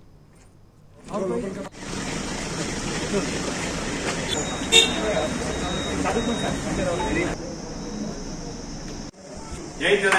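A crowd of men and women talk and murmur outdoors.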